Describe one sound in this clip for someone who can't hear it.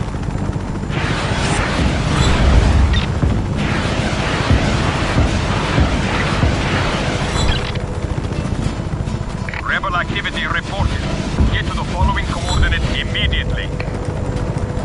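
Rockets fire and whoosh away in quick bursts.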